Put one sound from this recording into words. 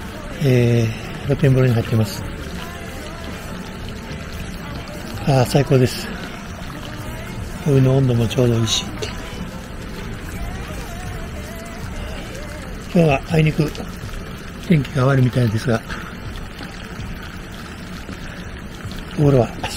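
Hot water trickles and laps steadily in a pool.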